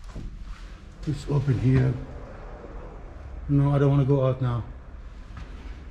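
A door swings open and clicks shut.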